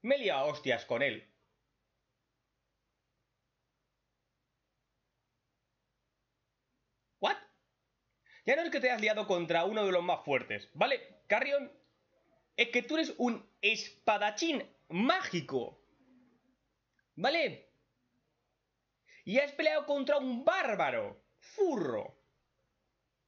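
A young man talks close to a microphone with animation, in bursts with pauses.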